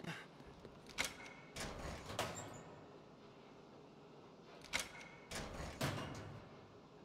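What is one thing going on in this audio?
A heavy metal locker door clanks and creaks open.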